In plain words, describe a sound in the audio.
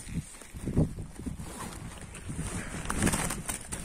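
A fabric bag rustles as it is handled close by.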